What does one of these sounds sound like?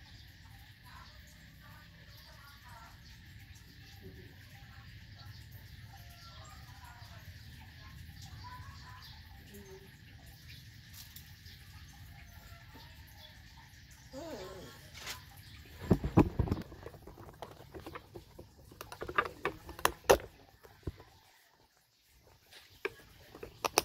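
A hand rubs and scratches a wet dog's fur.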